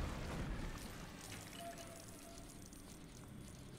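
Coins jingle and clatter as they scatter.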